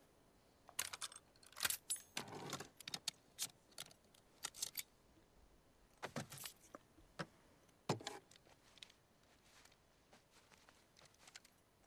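Metal gun parts click and clack together.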